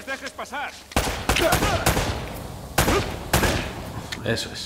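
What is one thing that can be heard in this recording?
Pistol shots ring out loudly with echoes.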